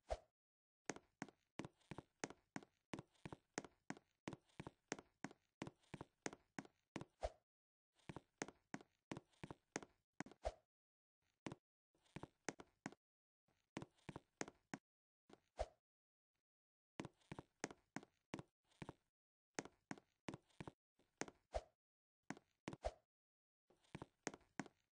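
Quick, even footsteps tap along a hard path, stopping now and then.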